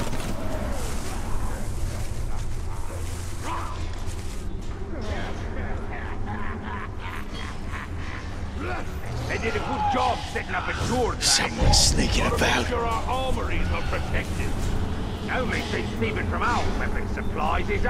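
Leaves rustle as someone creeps through dense bushes.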